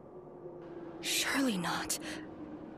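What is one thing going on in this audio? A young woman speaks softly and tensely.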